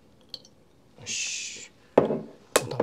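Liquid pours briefly into a bowl.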